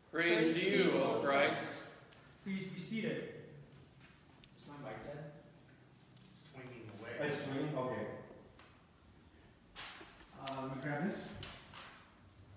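A man speaks calmly and clearly in a room with a slight echo.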